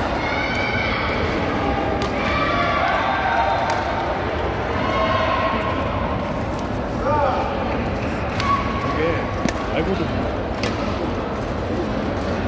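Shuttlecocks are hit with sharp pops in a large echoing hall.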